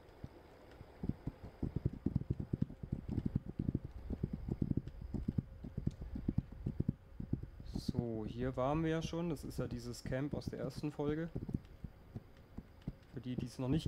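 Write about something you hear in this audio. A horse's hooves thud steadily on soft ground.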